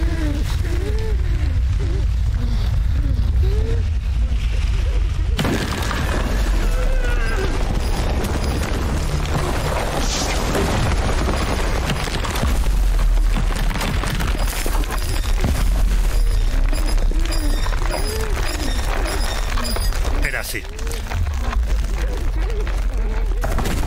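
Small footsteps patter quickly over stone.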